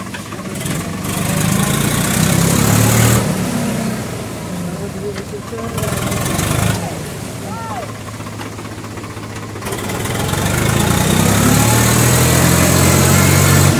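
Water splashes and churns around a turning tyre.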